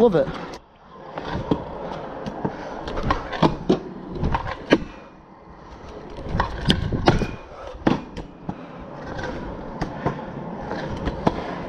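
Scooter wheels roll and rumble over concrete.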